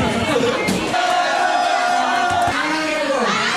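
A man shouts with excitement close by.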